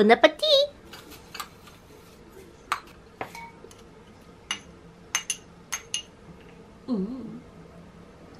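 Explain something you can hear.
A spoon clinks against a ceramic bowl.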